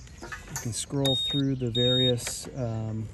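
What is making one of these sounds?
A scooter's ignition beeps twice in short, high tones.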